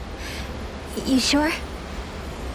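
A young woman asks a short question calmly.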